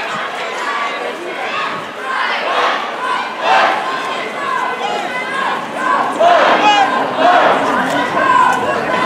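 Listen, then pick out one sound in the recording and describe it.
A crowd of men and women chants and talks loudly outdoors.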